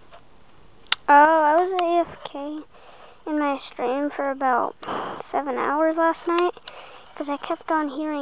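A tablet game plays bright, bouncing electronic tunes through a small speaker.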